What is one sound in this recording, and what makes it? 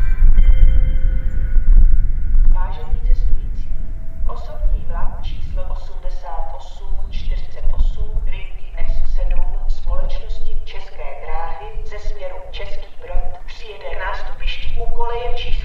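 Wind blows outdoors, rumbling steadily.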